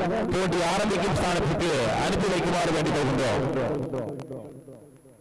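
A crowd cheers and calls out in the distance outdoors.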